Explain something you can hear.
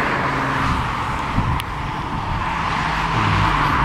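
Car tyres hiss along a road nearby.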